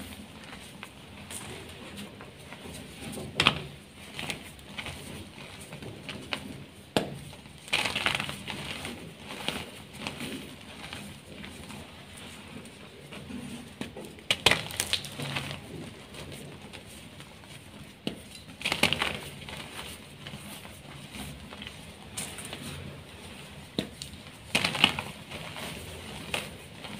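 Powdery crumbs rustle and patter down onto a loose heap.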